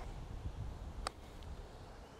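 A golf putter taps a ball with a light click.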